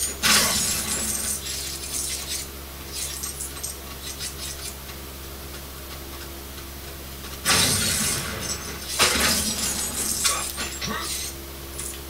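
A video game plays loudly through a television speaker.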